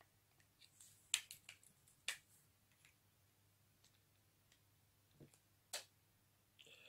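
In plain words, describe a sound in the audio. Small plastic parts click and tap as a man handles a device.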